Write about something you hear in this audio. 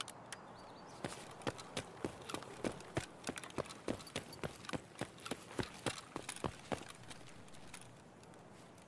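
Footsteps crunch quickly over hard ground.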